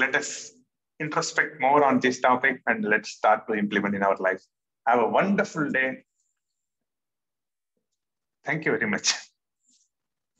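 A man talks cheerfully over an online call.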